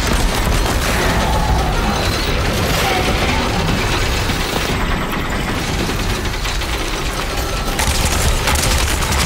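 A large mechanical creature stomps and growls with heavy metallic clanks.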